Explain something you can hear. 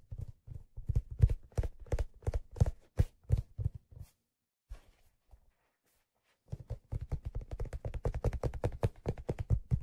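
Fingers tap and scratch on stiff leather close to a microphone.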